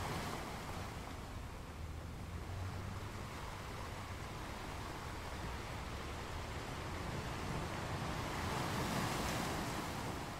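Ocean waves crash and roll onto rocks in a steady roar.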